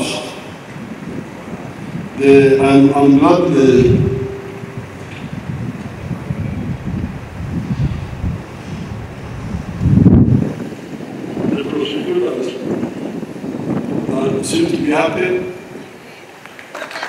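An elderly man speaks into a microphone over a loudspeaker, outdoors with echo.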